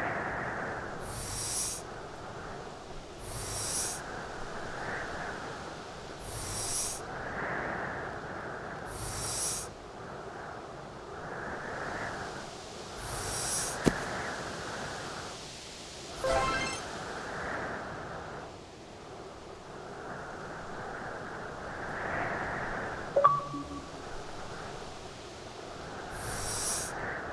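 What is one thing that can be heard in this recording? A heavy stone scrapes briefly as it is pushed, several times.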